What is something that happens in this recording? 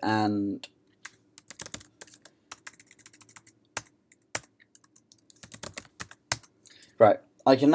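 Keys on a keyboard click as someone types.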